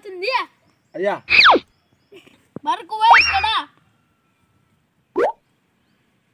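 A young boy cries out in pain.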